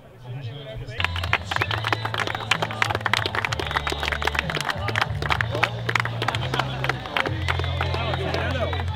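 A group of people applaud steadily.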